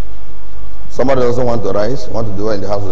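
A man speaks loudly and with animation through a microphone in a large hall.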